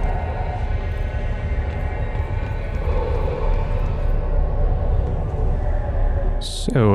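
A low, eerie hum drones steadily.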